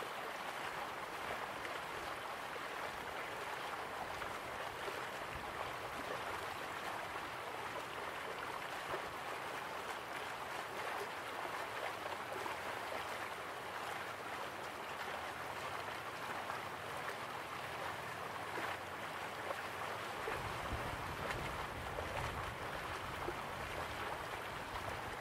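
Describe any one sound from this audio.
Water splashes steadily down a small waterfall into a pool.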